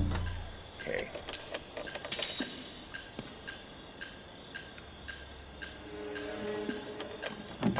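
A metal pick scrapes and clicks inside a door lock.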